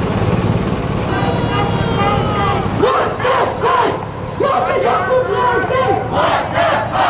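A crowd of marching protesters chants and shouts loudly.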